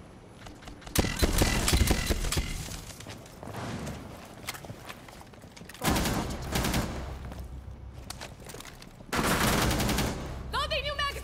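Loud bursts of gunfire crackle and echo.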